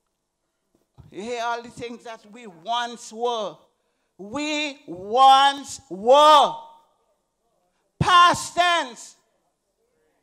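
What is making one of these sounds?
A man preaches with animation through a microphone.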